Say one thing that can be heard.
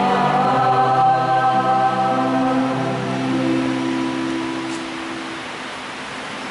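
Women sing together in a large echoing hall, then fall silent.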